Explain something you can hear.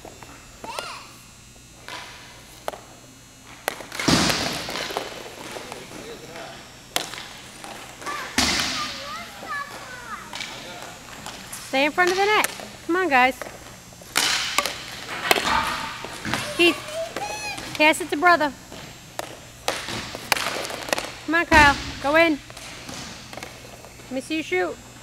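Skates scrape on a hard rink surface.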